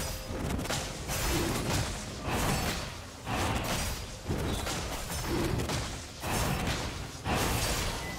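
Fantasy battle sound effects clash and whoosh as a creature is attacked.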